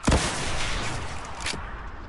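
A rocket launcher fires with a loud boom.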